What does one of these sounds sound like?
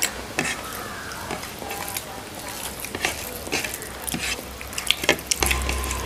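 Plates and utensils clink and scrape.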